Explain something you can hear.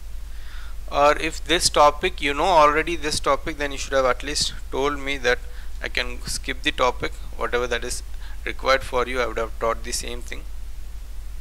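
A man lectures calmly and clearly into a close microphone.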